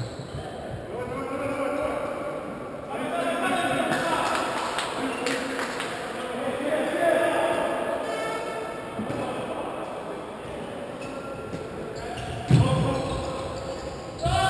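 A crowd chants and cheers in a large echoing hall.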